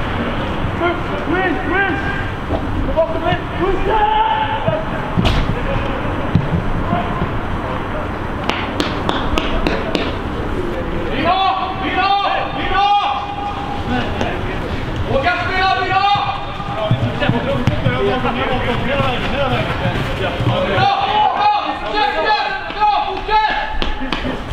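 Men shout and call out to each other across an open field, some distance away.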